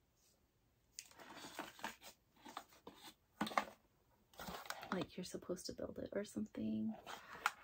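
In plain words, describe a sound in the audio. Cardboard rustles as a box is handled.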